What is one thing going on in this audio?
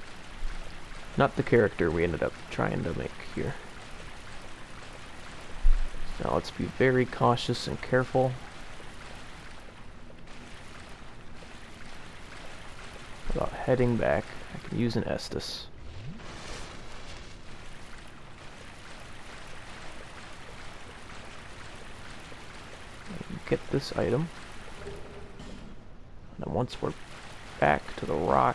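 Footsteps splash steadily through shallow water.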